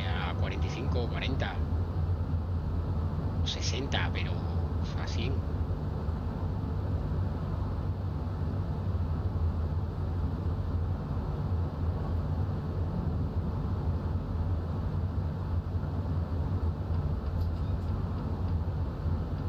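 A train engine hums low and steady while rolling along the track.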